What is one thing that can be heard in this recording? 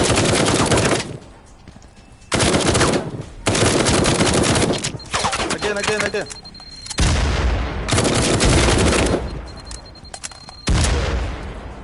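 Gunfire rattles in rapid, loud bursts.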